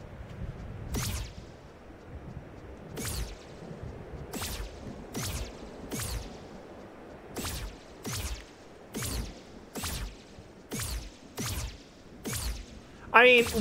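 Short whooshing swipes repeat at a steady pace.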